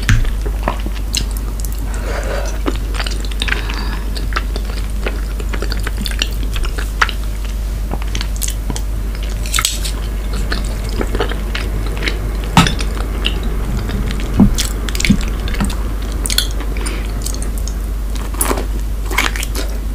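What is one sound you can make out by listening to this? A woman chews food wetly and close to a microphone.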